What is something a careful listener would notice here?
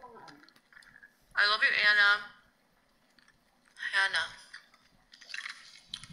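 A young woman chews food noisily, close up.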